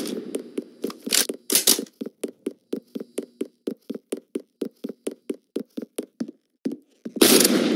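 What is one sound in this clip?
Footsteps run quickly on a hard surface.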